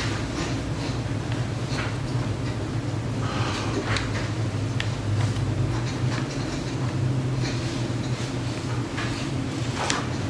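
Slow footsteps tread on a hard floor.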